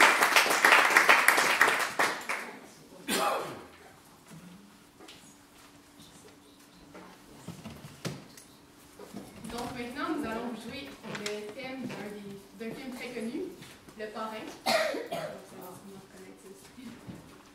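A crowd of adults chatters quietly nearby.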